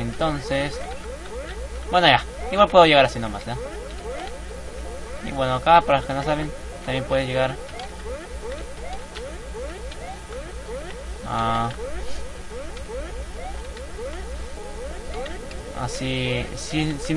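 Upbeat video game music plays steadily.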